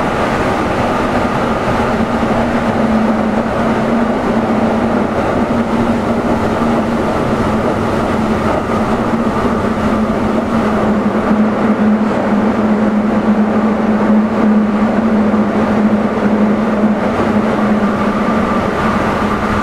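A train's electric motors hum steadily.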